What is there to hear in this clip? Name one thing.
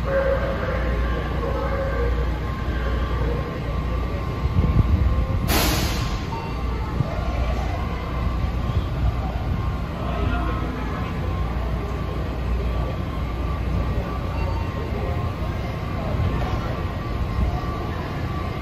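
A subway train idles with a low rumble in an echoing underground station.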